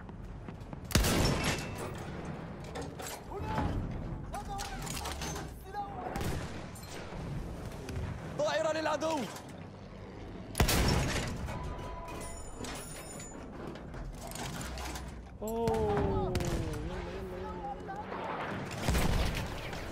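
Heavy gunshots boom with a rolling echo.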